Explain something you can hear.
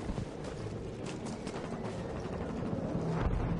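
Footsteps clang on a metal walkway.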